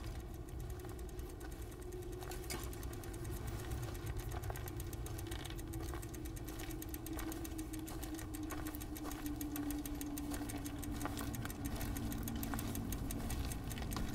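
Bicycle tyres roll over gravel, coming closer.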